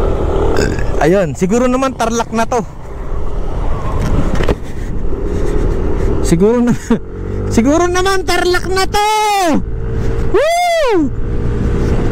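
A motorbike engine revs up and down sharply several times.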